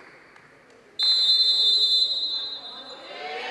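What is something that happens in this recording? A referee blows a loud whistle.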